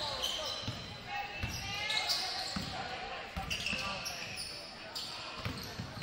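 A basketball bounces with dull thumps.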